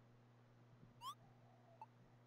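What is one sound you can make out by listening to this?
A short rising chirp sounds.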